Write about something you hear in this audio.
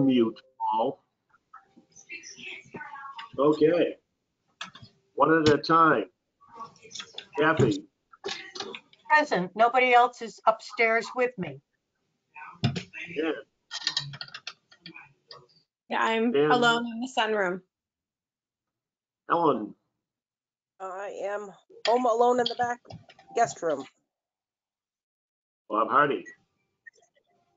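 Several older men and women talk by turns over an online call.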